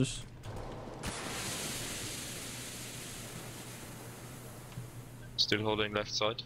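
A smoke grenade hisses steadily.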